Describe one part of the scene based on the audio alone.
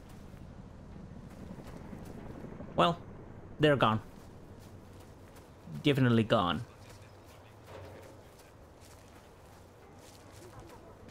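Footsteps crunch over dirt and leaves.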